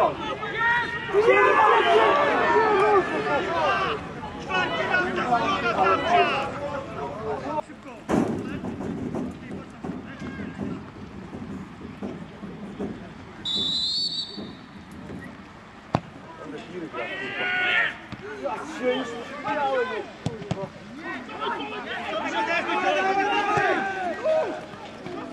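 Men shout across an open field outdoors.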